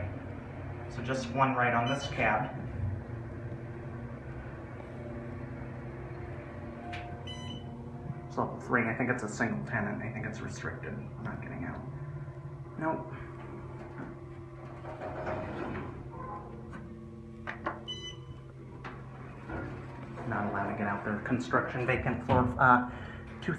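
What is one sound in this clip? An elevator hums steadily as it moves.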